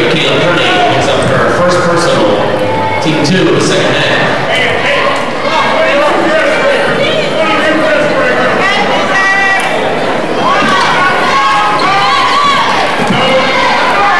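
A crowd in a large echoing gym cheers and talks.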